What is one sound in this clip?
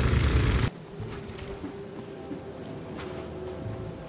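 Footsteps crunch on a path.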